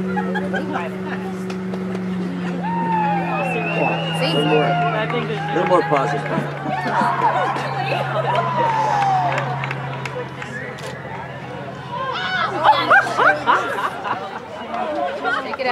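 Young women shout and call out across an open outdoor field.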